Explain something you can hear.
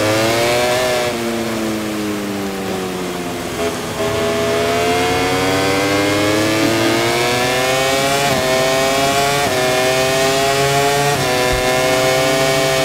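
A motorcycle engine whines loudly, dropping in pitch through a bend, then revving higher and shifting through gears.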